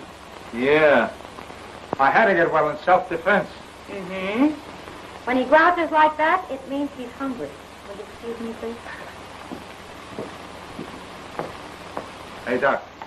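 A woman and a man talk in turns over a hissy old recording.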